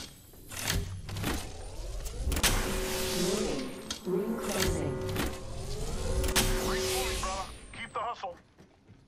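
A device charges with a rising electronic hum and whir.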